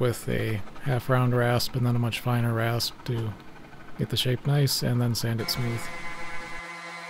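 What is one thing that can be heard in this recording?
A hand saw rasps back and forth through wood.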